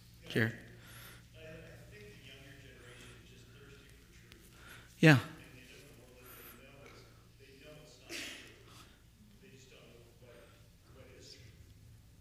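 A man talks calmly to an audience in a large room, with a slight echo.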